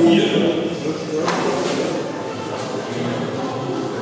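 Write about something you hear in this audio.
A ball lands with a thud and rolls across a hard floor in an echoing hall.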